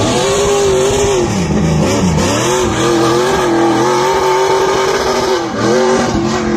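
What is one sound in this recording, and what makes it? Tyres squeal on asphalt.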